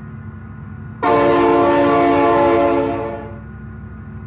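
A train horn blares.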